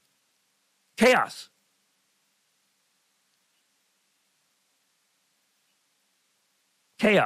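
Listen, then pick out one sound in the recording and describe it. An elderly man speaks into a microphone.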